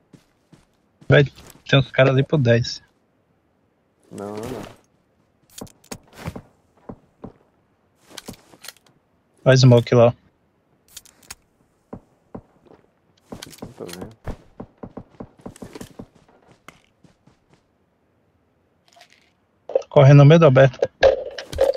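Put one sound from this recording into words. Footsteps crunch through grass and brush.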